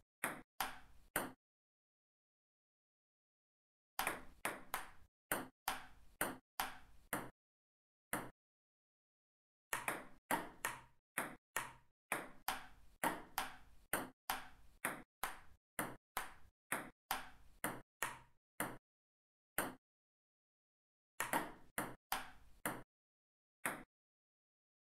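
A ping pong ball clicks back and forth off paddles and a table in quick bursts.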